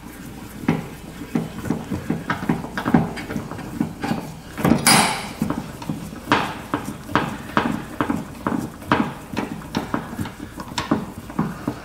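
A ratchet wrench clicks in quick, repeated bursts as a bolt is turned.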